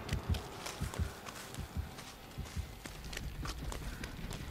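Footsteps run quickly through rustling grass.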